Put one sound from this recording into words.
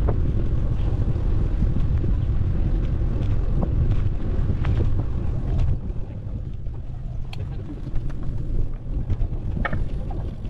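Bicycle tyres roll along a paved path.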